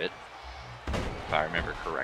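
Heavy bodies thud against each other.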